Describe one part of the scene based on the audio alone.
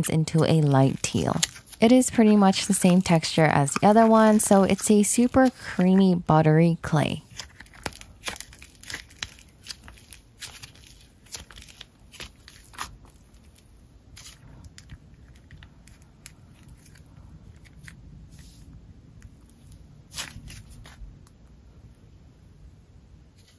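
A sticky slime squelches and crackles as hands squeeze and stretch it.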